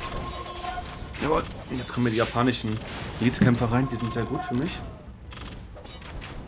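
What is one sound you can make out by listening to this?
Weapons clash and clatter in a battle.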